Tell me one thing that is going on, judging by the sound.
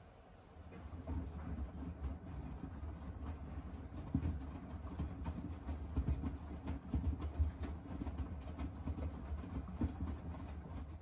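Wet laundry tumbles and sloshes inside a washing machine.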